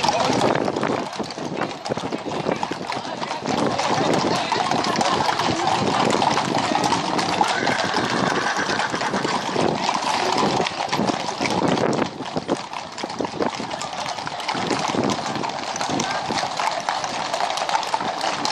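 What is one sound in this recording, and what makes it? Many horses' hooves clop on a paved road.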